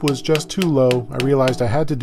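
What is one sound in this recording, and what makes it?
A hammer taps on a wooden block against a banjo rim.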